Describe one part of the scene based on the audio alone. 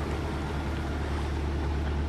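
A train rumbles across a bridge.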